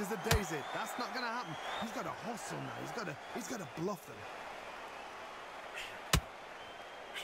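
Boxing punches land with dull thuds.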